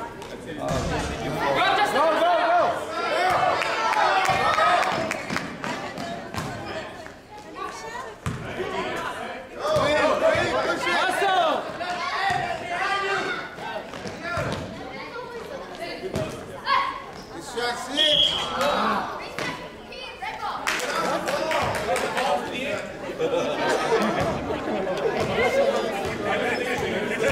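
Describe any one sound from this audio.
Children shout and call out in an echoing gym.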